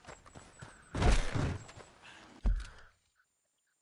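A heavy wooden barn door scrapes open.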